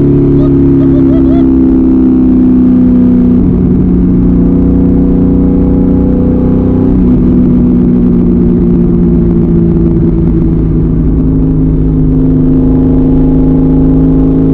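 A car engine drones loudly, dropping in pitch with each gear change.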